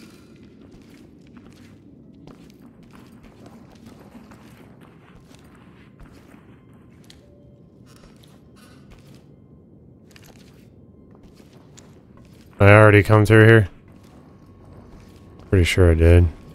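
Footsteps shuffle softly across a gritty floor.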